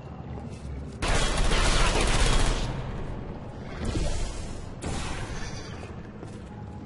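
A sci-fi energy gun fires with a loud whooshing zap.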